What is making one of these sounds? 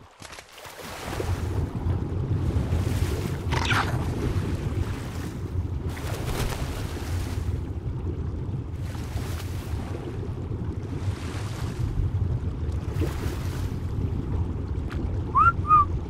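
Water churns in a low, muffled underwater rumble.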